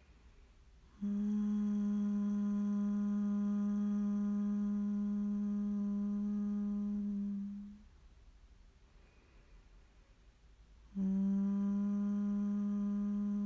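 A woman hums a long, steady low note.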